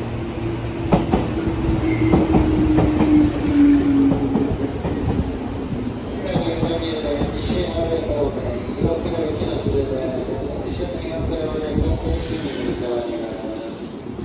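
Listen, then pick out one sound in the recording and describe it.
Train brakes squeal and screech as the train slows.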